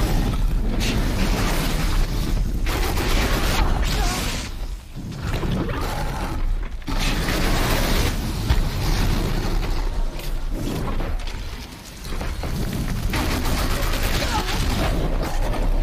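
A large machine creature growls and stomps.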